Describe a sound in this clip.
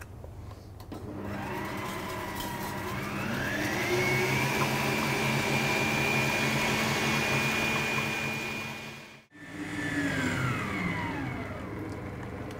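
An electric stand mixer whirs up to speed, runs steadily, then winds down.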